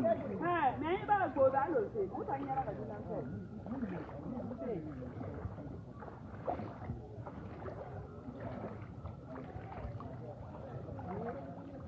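Feet splash and slosh through shallow water.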